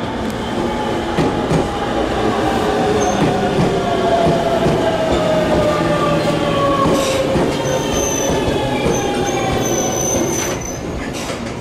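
A train's motor whines, falling slowly in pitch.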